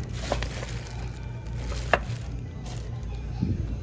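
Plastic bags crinkle and rustle as a hand handles them.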